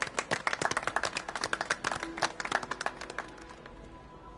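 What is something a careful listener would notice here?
A group of people clap and applaud.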